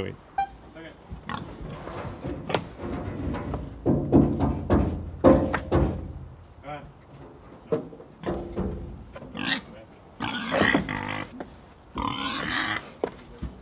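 A pig grunts and snuffles.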